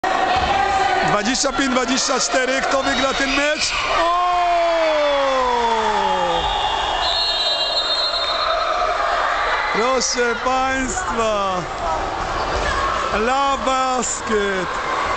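Young players shout and call out in a large echoing hall.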